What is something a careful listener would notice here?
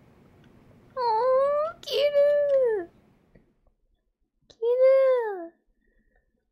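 A young woman speaks with exaggerated, whining animation close to a microphone.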